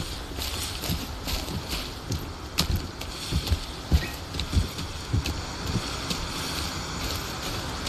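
Footsteps rustle through grass and brush at a steady walking pace.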